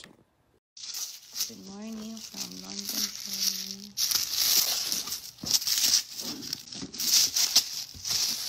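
Tissue paper rustles and crinkles under hands.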